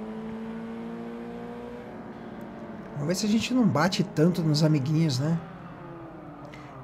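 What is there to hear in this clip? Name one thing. A car engine hums steadily at high revs.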